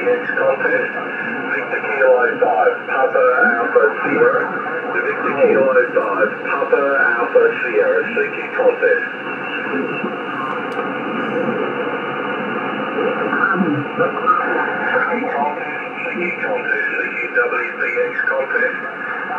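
A shortwave radio hisses and crackles with static through its loudspeaker.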